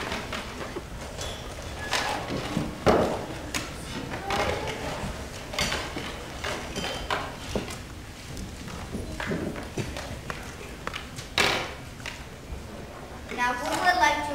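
Young children talk and murmur on a stage, heard from a distance in a hall.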